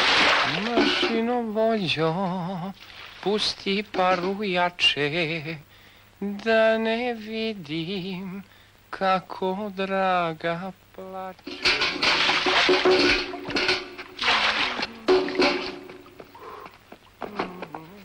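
A man speaks loudly and with animation nearby.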